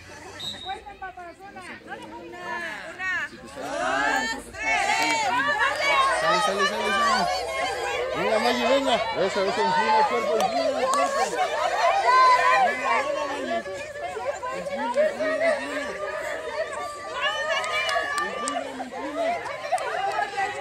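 A crowd of young children shouts and squeals excitedly nearby.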